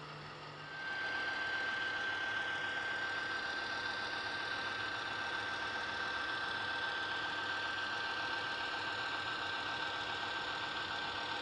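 A model locomotive's motor hums with a steady high whine.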